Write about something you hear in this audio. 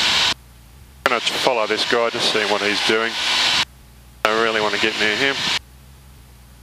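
A man speaks calmly through an aircraft headset intercom.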